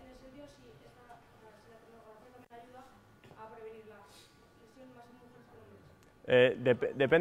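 A man speaks calmly at a distance in a room.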